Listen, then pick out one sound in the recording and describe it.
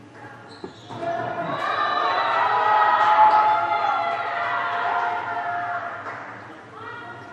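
A group of young women cheers loudly after a point.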